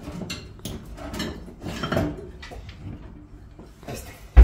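Dishes clatter on a rack.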